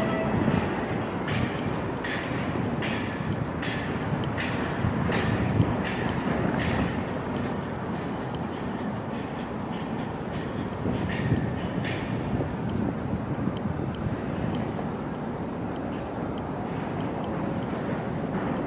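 A person rolls over and over on a concrete pavement, with soft scuffs and thumps.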